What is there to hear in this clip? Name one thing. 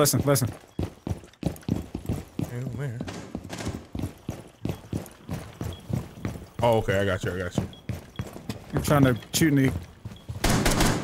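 Footsteps tap quickly across a wooden floor.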